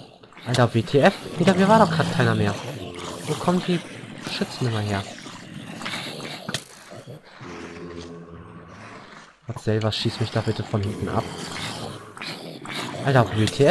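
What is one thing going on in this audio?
Zombies groan nearby.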